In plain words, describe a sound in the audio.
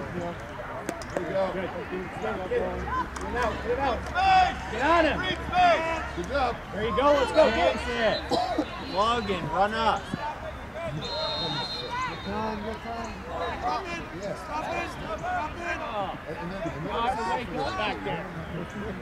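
Young players and onlookers shout and call out across an open outdoor field.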